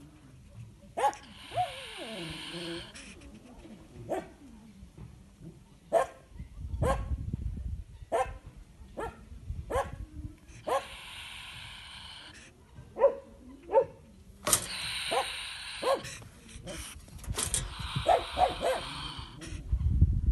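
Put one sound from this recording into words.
A small animal hisses sharply in repeated bursts, close by.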